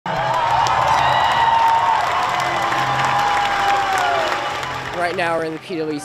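A large crowd cheers and screams in an echoing hall.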